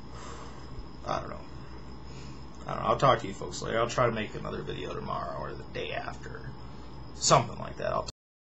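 A young man speaks casually and close by.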